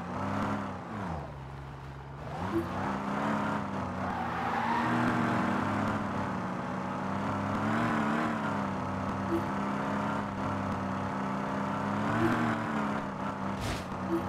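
A car engine revs up and down through the gears as it speeds up.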